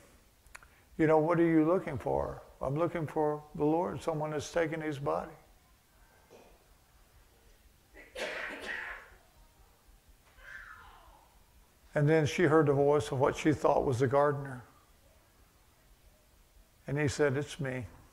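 An elderly man speaks calmly into a microphone, in pauses.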